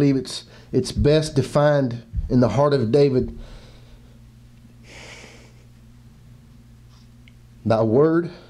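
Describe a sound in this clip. A man speaks through a microphone, pausing between phrases.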